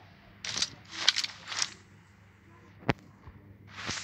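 A rifle scope clicks into place.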